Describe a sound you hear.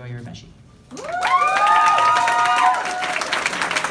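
An audience cheers and whoops loudly.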